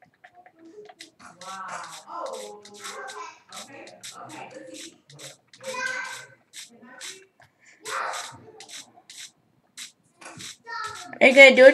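Game footsteps patter on grass through a small tablet speaker.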